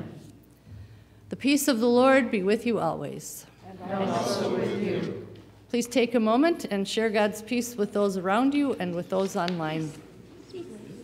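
An elderly woman speaks warmly through a microphone in a large echoing room.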